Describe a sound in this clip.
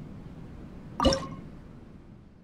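A soft whoosh sounds.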